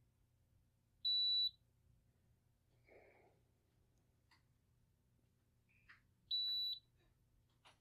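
A machine gives a short, high electronic beep twice.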